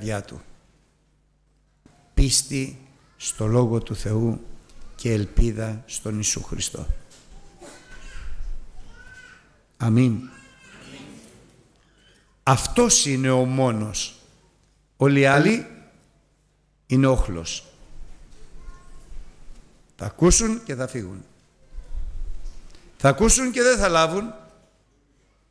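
An older man speaks steadily into a microphone, heard through a loudspeaker in a large echoing hall.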